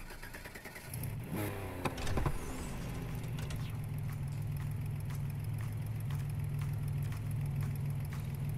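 A car engine revs and then idles with a deep, steady rumble.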